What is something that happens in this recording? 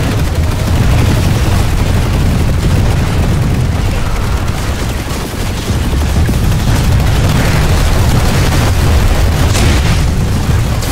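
Electric weapons crackle and buzz.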